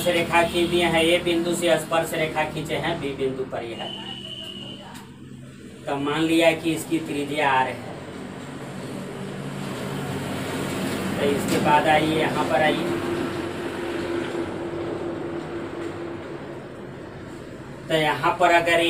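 A man speaks calmly, as if teaching.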